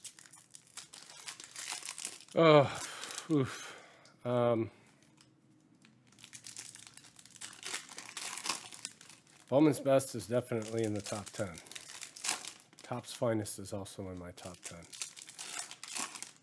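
Foil card packs crinkle and tear as they are opened.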